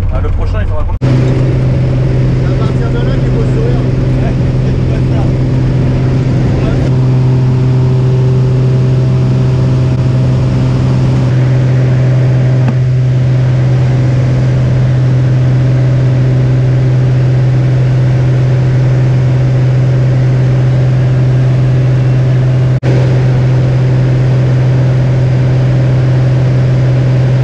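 A small propeller plane's engine drones loudly and steadily from inside the cabin.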